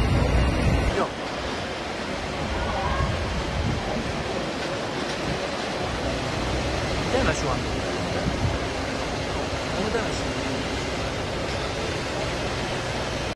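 Water sprays from a fire hose nozzle.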